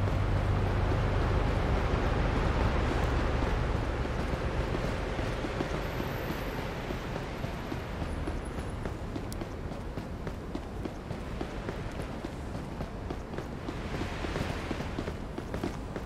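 Footsteps walk briskly on pavement.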